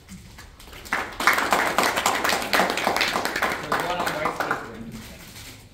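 People applaud.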